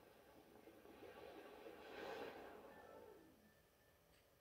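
A game console's startup sound swells with a rising whoosh and then fades away.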